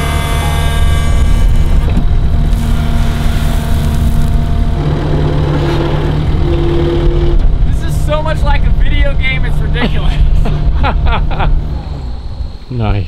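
A diesel engine rumbles loudly and steadily close by.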